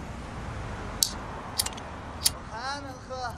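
A lighter clicks several times.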